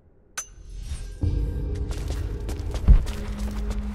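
A torch fire crackles softly.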